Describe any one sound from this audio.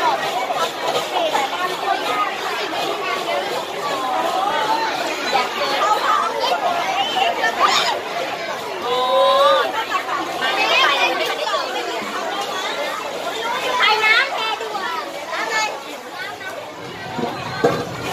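A crowd of children and adults chatter nearby.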